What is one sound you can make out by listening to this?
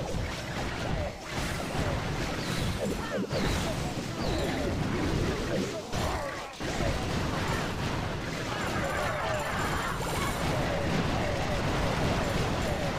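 Small explosions and thuds of a game battle go on rapidly.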